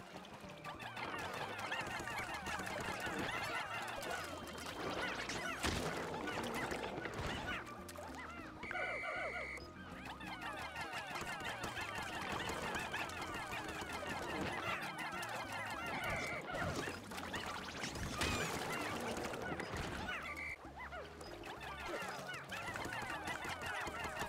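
Many small creatures chatter in rapid, high squeaky chirps.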